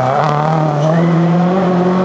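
Gravel sprays and rattles under a car's tyres.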